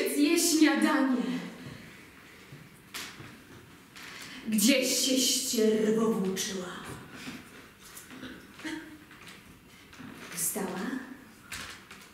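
A young woman speaks loudly and with strong emotion, close by.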